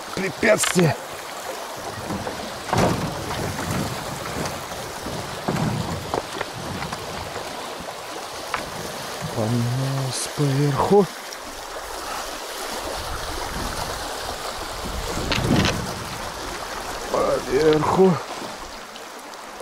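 Water rushes and gurgles steadily around a small boat.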